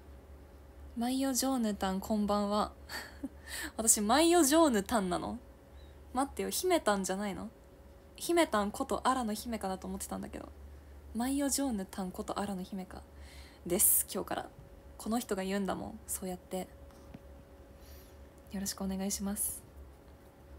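A young woman talks casually and cheerfully, close to a microphone.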